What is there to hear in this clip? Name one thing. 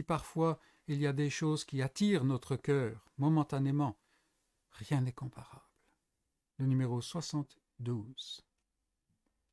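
An older man speaks calmly and close, as if over an online call.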